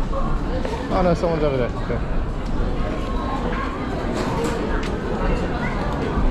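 A plastic bag rustles close by.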